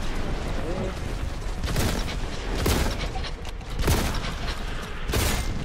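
A heavy gun fires loud bursts of shots.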